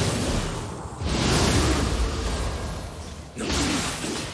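A magic burst whooshes loudly.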